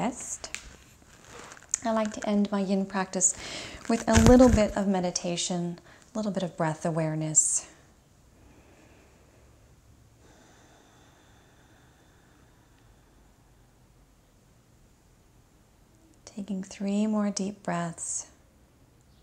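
A woman speaks calmly and softly, close by.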